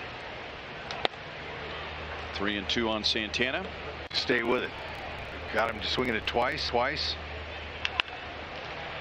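A bat cracks sharply against a baseball.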